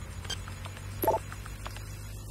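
A short electronic beep sounds once.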